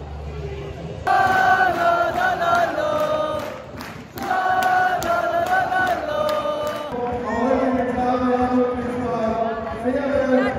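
A large crowd sings and chants loudly in an open stadium.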